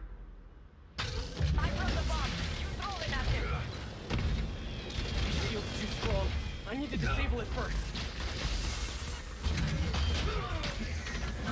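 Energy blasts boom and crackle in a fight.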